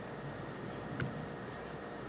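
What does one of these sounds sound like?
A golf putter taps a ball softly.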